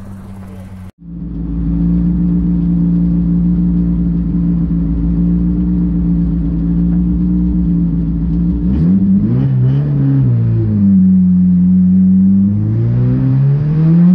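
A race car engine roars loudly from inside the cabin and revs up and down through gear changes.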